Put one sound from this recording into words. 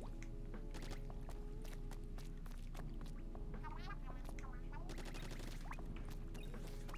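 Wet splatting and popping effects burst again and again.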